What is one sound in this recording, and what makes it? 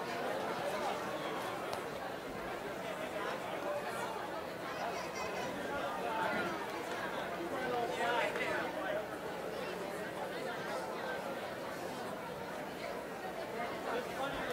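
A crowd of children chatters in a large echoing hall.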